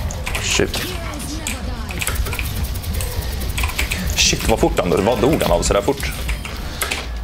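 Keys clatter rapidly on a keyboard.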